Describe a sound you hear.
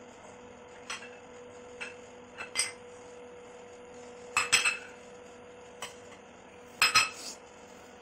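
A spoon clinks against a metal bowl.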